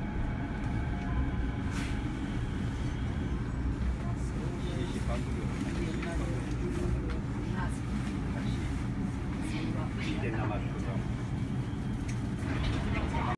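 A train rumbles and hums steadily as it pulls out along its track.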